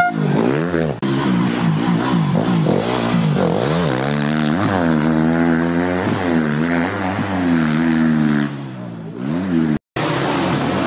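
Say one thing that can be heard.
A dirt bike engine revs hard, rising and falling in pitch as it passes close.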